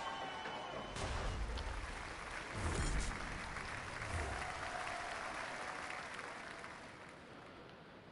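A crowd cheers and applauds.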